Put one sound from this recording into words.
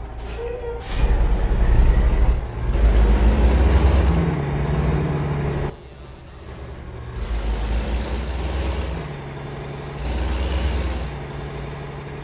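A truck engine revs up loudly in bursts.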